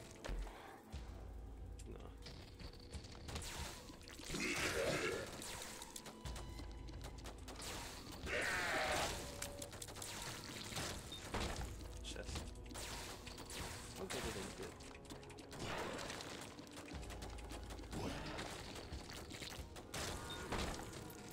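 Video game shots and splatter effects pop rapidly.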